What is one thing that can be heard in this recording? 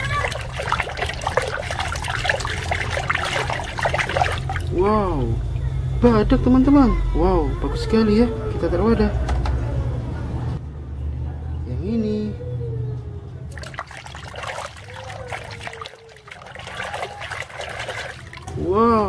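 A hand swishes through soapy water in a tub.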